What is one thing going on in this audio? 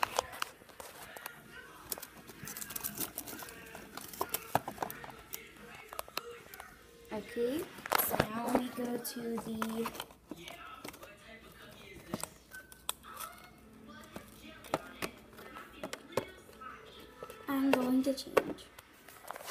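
A small plastic toy taps against cardboard.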